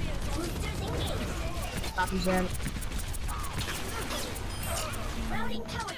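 Laser blasts hum and crackle.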